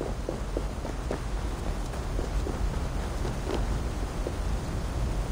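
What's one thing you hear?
Footsteps tread on hard ground.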